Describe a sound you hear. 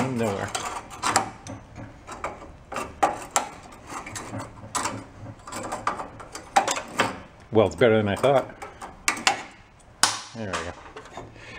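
Metal pliers click and clink against engine parts.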